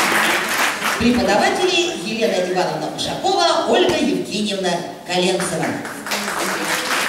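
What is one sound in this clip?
A boy speaks into a microphone in an echoing hall.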